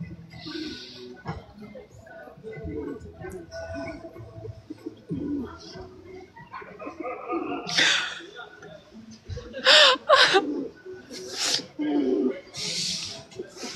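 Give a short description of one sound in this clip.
A young woman talks and laughs with animation over an online call.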